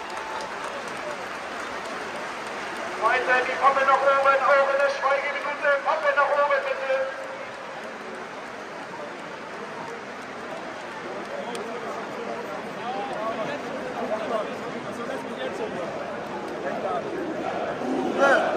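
A large stadium crowd murmurs and cheers in a huge open space.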